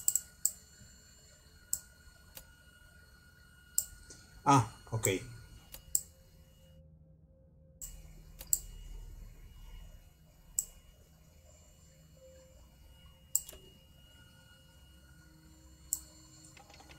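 Metal parts click and clank into place.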